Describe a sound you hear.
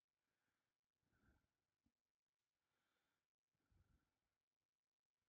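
A man speaks quietly and briefly into a close microphone.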